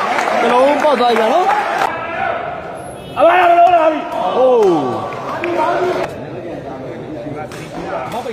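A crowd of spectators cheers and shouts loudly, echoing in a large hall.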